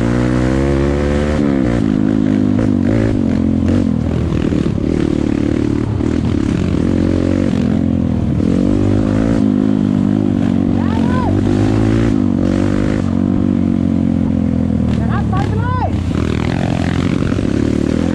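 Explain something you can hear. A dirt bike engine revs and drones up close, rising and falling as it rides.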